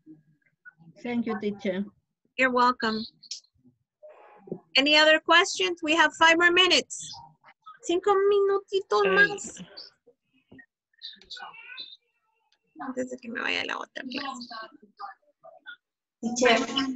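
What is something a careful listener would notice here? A woman speaks clearly and with animation over an online call.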